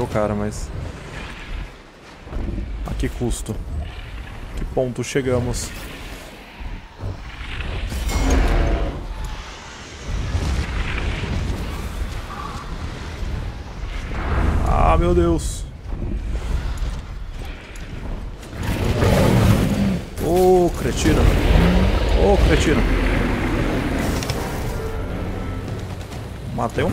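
A dragon breathes a roaring stream of fire.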